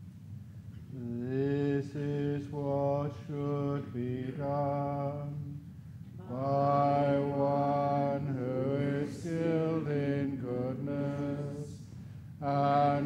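An older man chants slowly in a deep, steady voice nearby.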